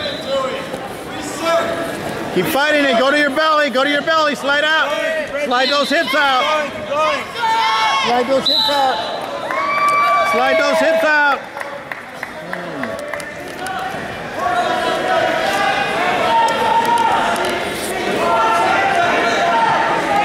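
A crowd of men and women shout encouragement loudly in an echoing hall.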